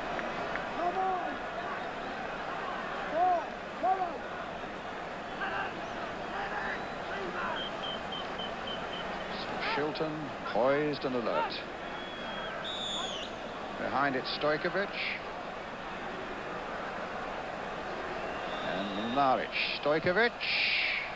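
A large crowd murmurs and chants in a big open stadium.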